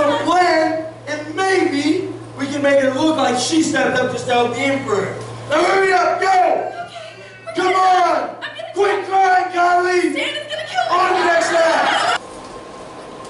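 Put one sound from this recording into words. A woman speaks loudly and with feeling over a microphone in a large hall.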